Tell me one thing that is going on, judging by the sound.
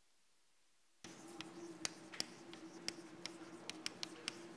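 Chalk taps and scrapes on a blackboard in a large echoing hall.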